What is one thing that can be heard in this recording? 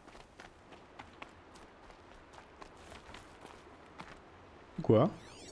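Footsteps crunch softly on rough ground.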